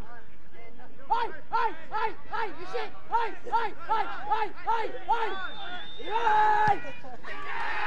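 A crowd of spectators chants in a steady rhythm.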